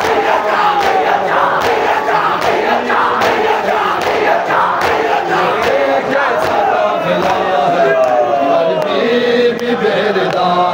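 A crowd of men beats their chests in a steady rhythm.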